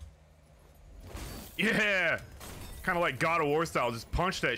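A chest bursts open with a sparkling whoosh.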